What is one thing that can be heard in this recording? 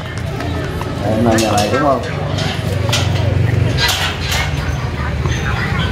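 A boy rattles a metal gate.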